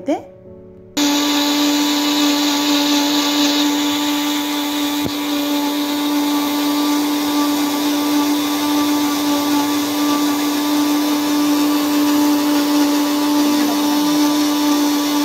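A small electric blender motor whirs loudly and steadily.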